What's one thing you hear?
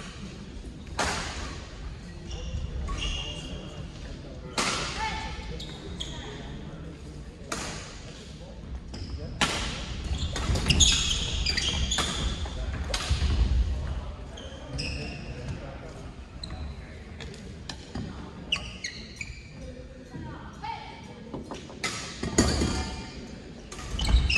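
Shuttlecocks are struck with sharp racket smacks in a large echoing hall.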